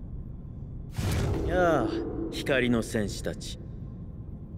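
A man speaks in a deep, firm voice.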